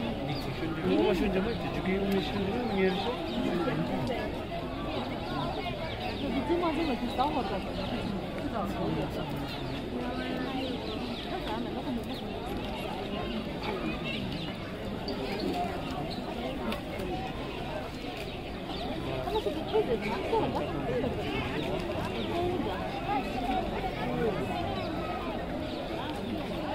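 A crowd of men and women chatters outdoors nearby.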